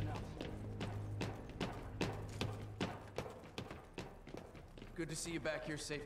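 Gunshots fire in quick, rapid bursts.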